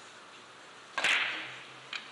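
A cue strikes a billiard ball with a sharp knock.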